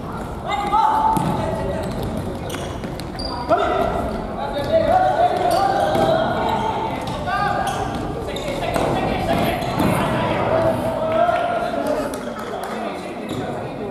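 A ball thuds off a foot.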